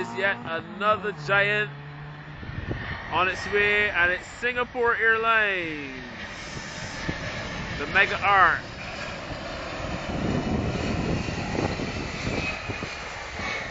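A jet airliner's engines roar loudly as it passes close by.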